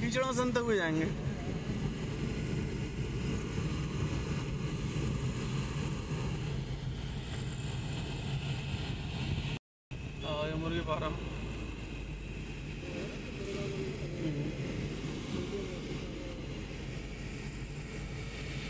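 A car rumbles steadily along a rough road.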